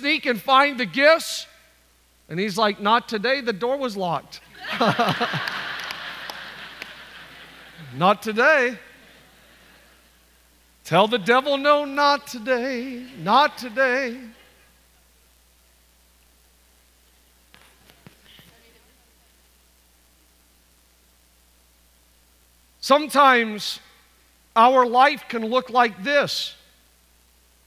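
A man speaks with animation into a microphone in a large hall.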